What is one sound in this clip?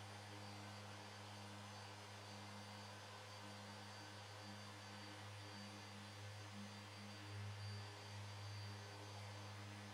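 An electric orbital sander whirs steadily.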